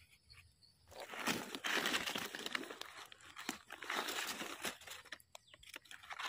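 Dry leaves rustle and crackle as a hand pulls a mushroom from the ground.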